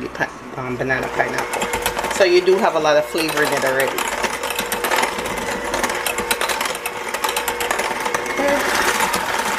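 Mixer beaters clatter against a glass bowl.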